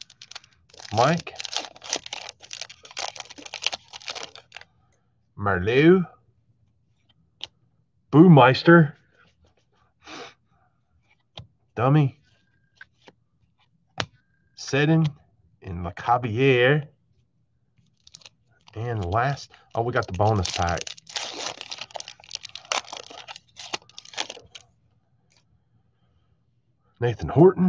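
Plastic card sleeves rustle and crinkle in hands.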